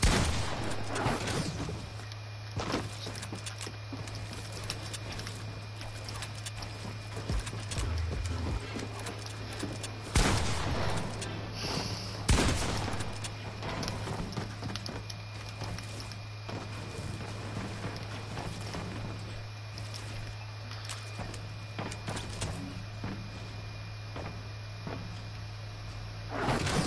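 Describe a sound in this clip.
Building pieces click and thud into place in rapid succession.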